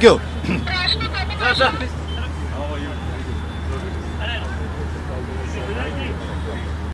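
A middle-aged man speaks cheerfully into microphones nearby.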